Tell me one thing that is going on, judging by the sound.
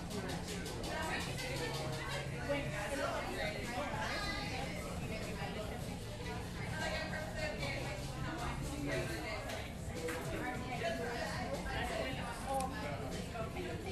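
Many people chatter quietly in the background.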